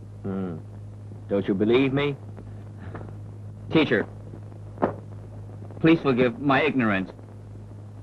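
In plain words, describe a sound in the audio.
A man speaks calmly in short phrases.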